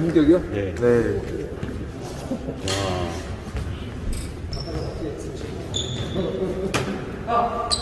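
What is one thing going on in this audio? Young men call out to each other in an echoing hall.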